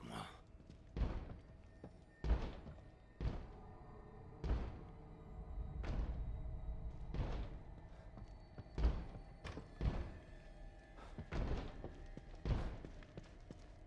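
Heavy footsteps thud slowly on a wooden floor.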